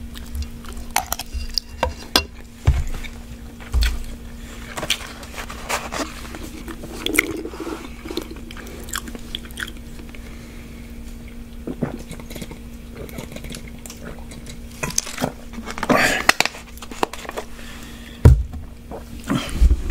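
A man chews food with loud, wet mouth sounds close to a microphone.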